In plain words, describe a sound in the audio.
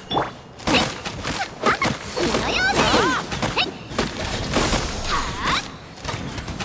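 Fiery blasts crackle and burst.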